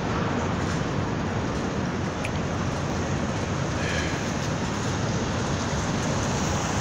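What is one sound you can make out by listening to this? Cars drive by on a street with a low, steady rumble.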